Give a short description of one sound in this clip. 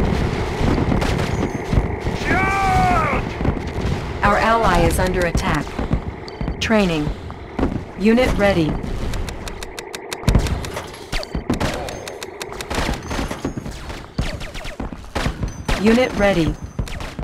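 Tank cannons fire repeatedly in a loud battle.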